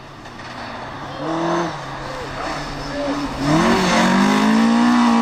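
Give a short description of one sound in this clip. A car engine approaches and revs up loudly.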